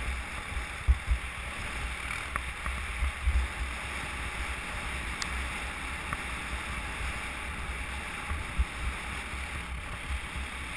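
A sled hisses over packed snow.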